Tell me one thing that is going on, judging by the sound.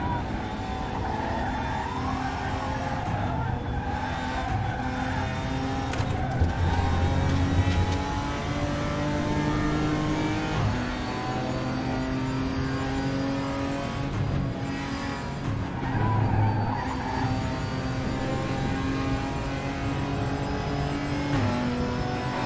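A racing car engine roars steadily, climbing in pitch and dropping briefly at each gear change.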